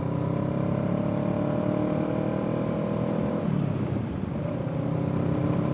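A parallel-twin cruiser motorcycle engine hums while cruising on a road.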